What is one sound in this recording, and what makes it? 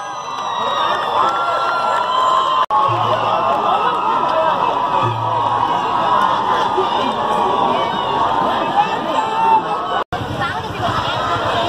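A large crowd of men and women chatters and calls out outdoors.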